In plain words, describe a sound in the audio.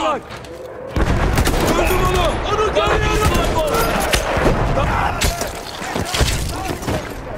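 A rifle fires loud shots at close range.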